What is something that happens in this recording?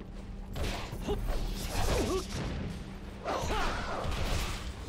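A monster screeches in gliding cries.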